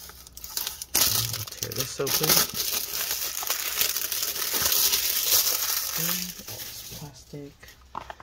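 Plastic wrap crinkles and rustles loudly, close by.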